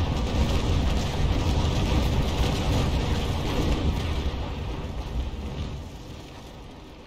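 Cannon fire booms and rumbles loudly.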